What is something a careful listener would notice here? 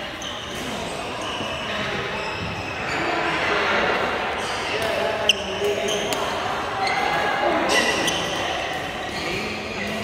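Shoes squeak on the hard court floor.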